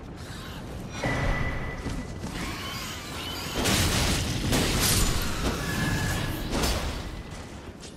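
A sword slashes and strikes with heavy impacts.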